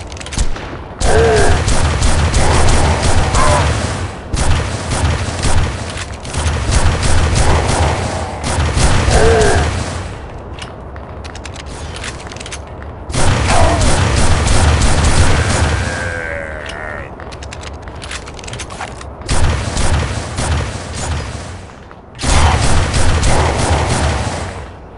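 A heavy gun fires rapid, loud bursts of shots.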